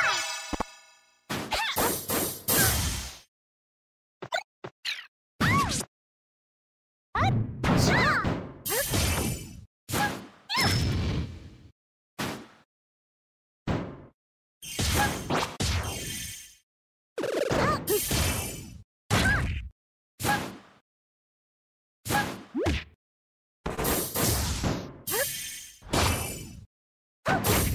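Game hits and magic effects burst in quick, sharp bursts with sliding tones.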